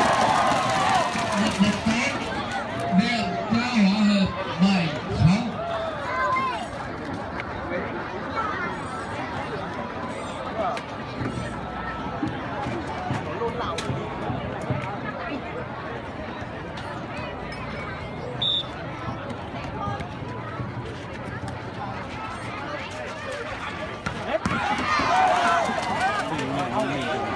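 A large outdoor crowd chatters and cheers loudly nearby.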